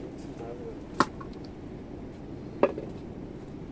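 A plastic ladle knocks against a jug.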